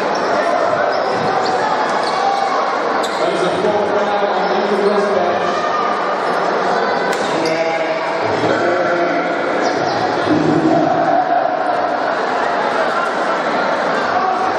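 A large crowd murmurs and chatters in an echoing indoor hall.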